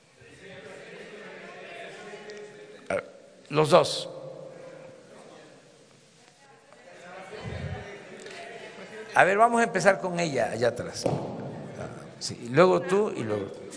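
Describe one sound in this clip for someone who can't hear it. An elderly man speaks forcefully into a microphone in a large echoing hall.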